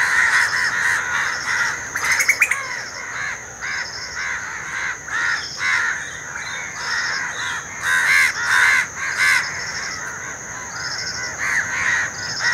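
A crow caws loudly and repeatedly, close by.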